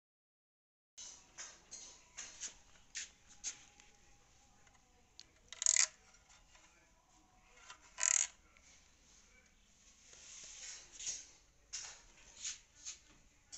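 Plastic and metal fittings knock and scrape against a rough wall.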